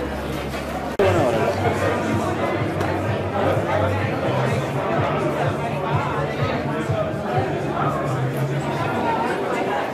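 Many people chatter at once in a crowded indoor space.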